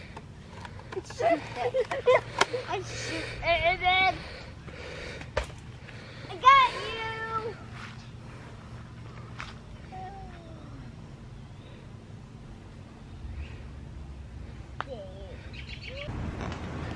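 A young child babbles and squeals excitedly.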